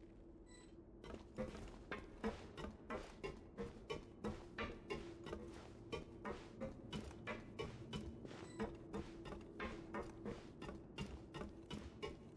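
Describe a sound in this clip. Quick footsteps patter steadily across wooden boards.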